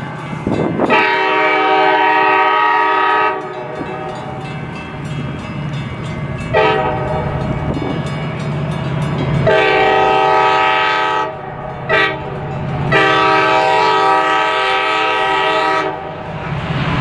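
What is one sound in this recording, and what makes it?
A train horn blares in long blasts as a train approaches.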